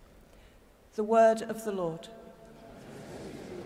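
A woman speaks briefly through a microphone, her voice echoing in a large hall.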